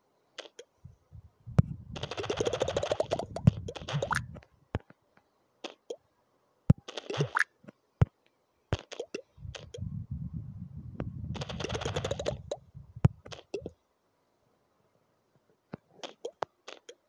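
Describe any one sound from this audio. A ball bounces with short popping clicks.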